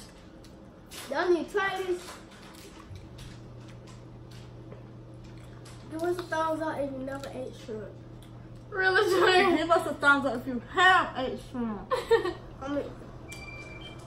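Young girls talk and laugh with animation close by.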